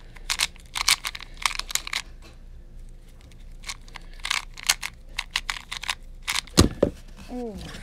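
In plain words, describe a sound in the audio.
A plastic puzzle cube clicks and clacks rapidly as it is twisted.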